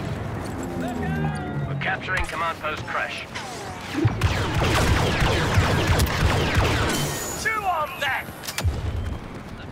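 Blasters fire in quick bursts.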